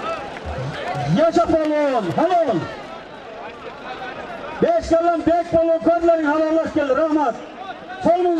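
Men in a crowd shout and cheer loudly.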